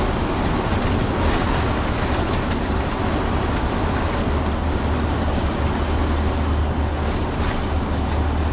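A bus engine drones steadily and low while driving.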